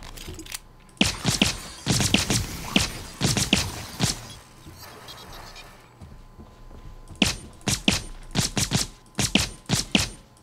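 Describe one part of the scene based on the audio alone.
A pistol fires rapid, sharp shots.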